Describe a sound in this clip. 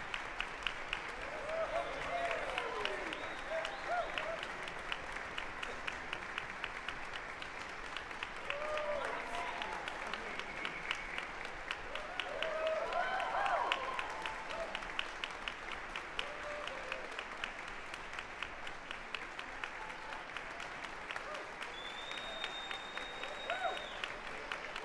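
A band claps along in a steady, quick rhythm in a large hall.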